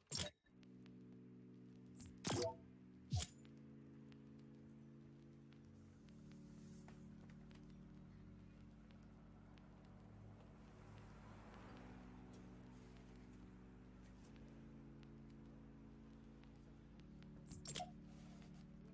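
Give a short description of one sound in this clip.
Short interface clicks chime as menu selections are made.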